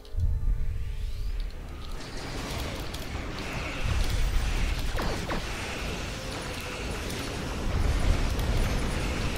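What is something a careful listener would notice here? Explosions boom and rumble deeply, over and over.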